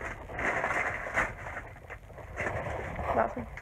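A cardboard box rustles as it is handled.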